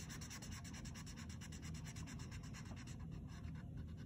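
A felt marker dabs and squeaks on paper.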